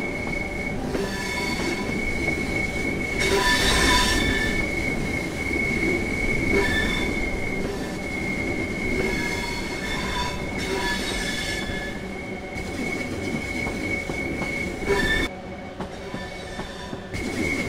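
An electric train hums and rumbles steadily along the rails.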